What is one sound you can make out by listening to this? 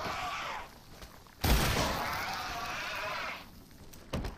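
A monstrous creature lets out a loud, rasping screech.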